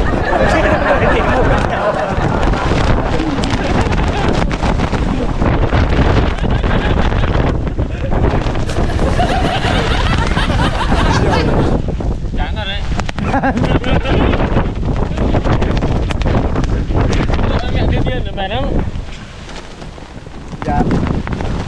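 A young man talks cheerfully and laughs close to the microphone.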